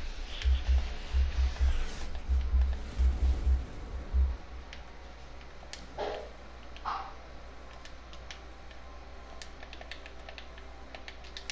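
Building pieces snap into place with short clicks.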